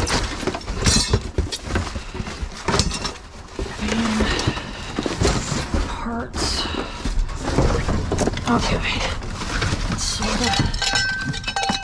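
Plastic packing pieces clatter and rattle as they are handled.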